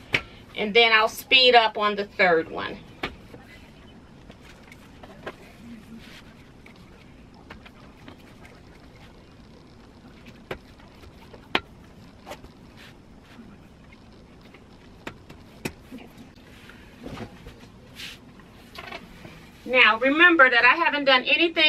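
Fabric rustles softly as a quilt is smoothed by hand.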